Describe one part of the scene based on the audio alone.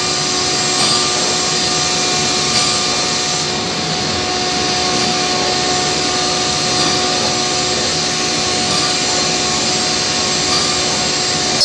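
A machine router whines steadily as it cuts into a wooden board.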